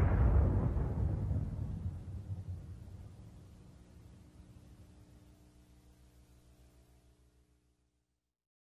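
A huge explosion booms and rumbles slowly away into the distance.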